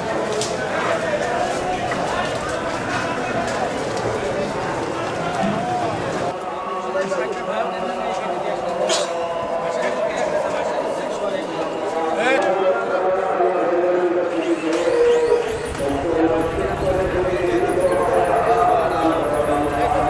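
A crowd of men chatters nearby.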